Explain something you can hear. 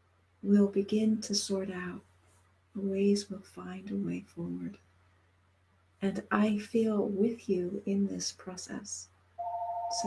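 A middle-aged woman speaks calmly and warmly over an online call.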